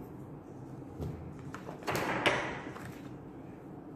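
A sheet of paper rustles as it slides across a table.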